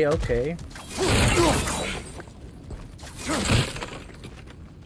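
A flaming blade swings with a fiery whoosh.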